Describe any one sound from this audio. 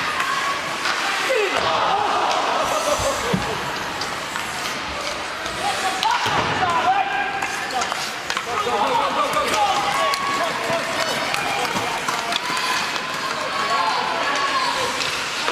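Spectators shout and cheer in an echoing indoor rink.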